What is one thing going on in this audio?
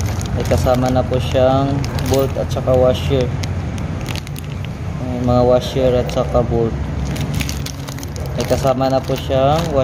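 Loose metal bolts clink together in a plastic bag.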